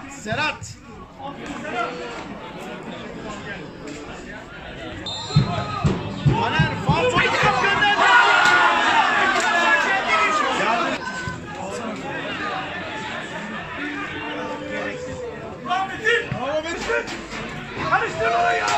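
Young men shout and call out across an open outdoor pitch.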